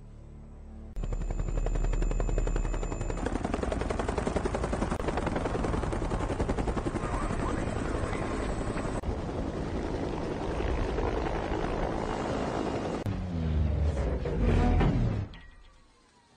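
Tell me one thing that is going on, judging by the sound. A helicopter's rotor blades thump loudly overhead.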